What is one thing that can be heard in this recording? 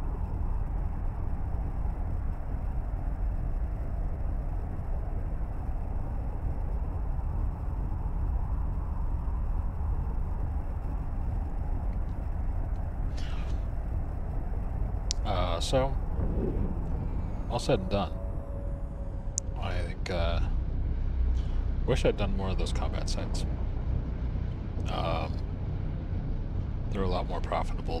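A spaceship's engines hum with a low, steady rumble.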